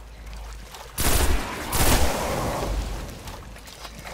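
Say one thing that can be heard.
A rifle fires a burst of loud shots.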